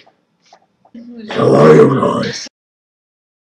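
A young woman talks with animation through an online call.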